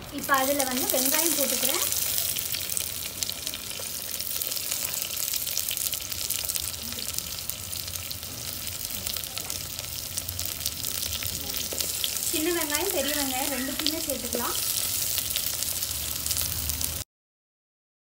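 Onions sizzle and crackle in hot oil.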